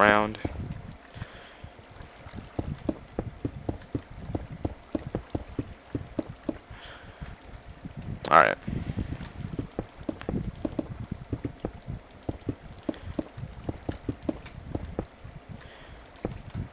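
Blocks crunch and crumble as they are broken, in quick repeated knocks.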